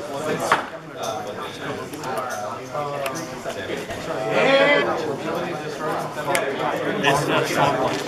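Playing cards are shuffled in hand.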